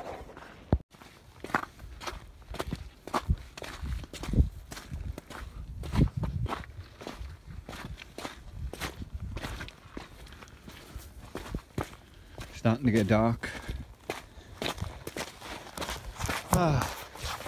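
Footsteps crunch on a gravel track.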